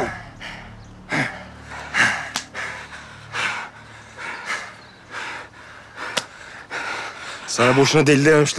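A man grunts and gasps heavily.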